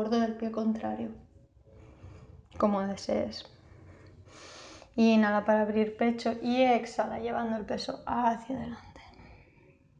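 A young woman speaks calmly, as if giving instructions.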